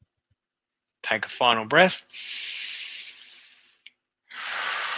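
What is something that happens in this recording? A man breathes out heavily, close to a headset microphone.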